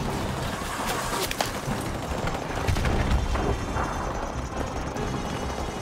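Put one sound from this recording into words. Footsteps crunch on gravel and grass at a brisk walk.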